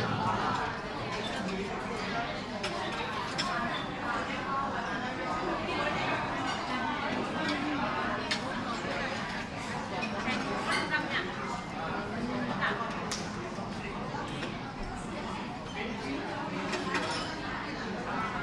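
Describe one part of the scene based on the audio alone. A crowd of people chatters in the background.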